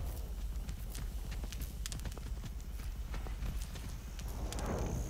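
Footsteps run quickly through rustling grass.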